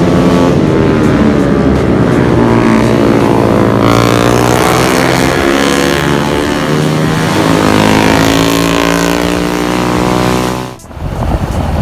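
Racing motorcycle engines roar and rev as motorcycles speed past.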